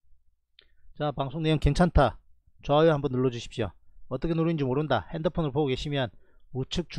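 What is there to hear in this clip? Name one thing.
A man speaks steadily into a microphone, close up.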